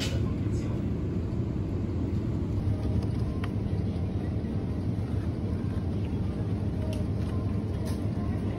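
A hand lifts a cardboard yogurt multipack from a shelf.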